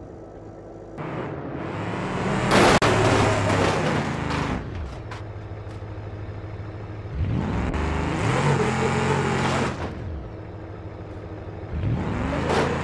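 A truck engine roars and revs loudly.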